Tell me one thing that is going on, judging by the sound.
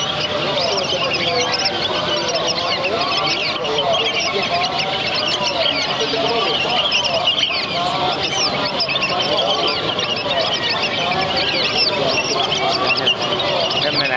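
Many small birds chirp and twitter busily up close.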